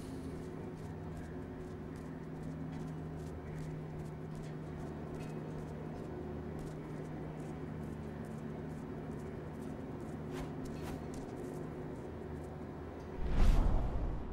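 Small animal paws patter quickly across metal grating and a hard floor.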